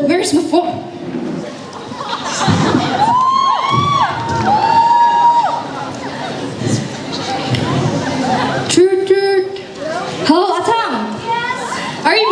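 A young woman speaks with animation through a microphone and loudspeakers.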